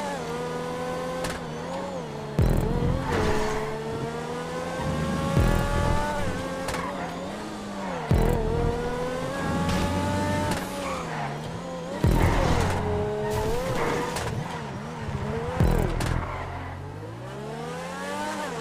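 A high-revving car engine roars, rising in pitch and dropping sharply with each gear change.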